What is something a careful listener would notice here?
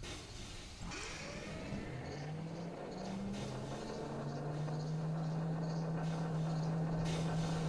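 A machine hums with a low, steady drone that rises slightly as it starts.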